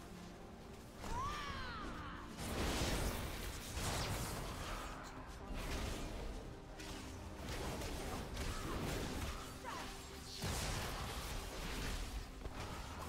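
Spell effects whoosh and burst in rapid bursts of combat.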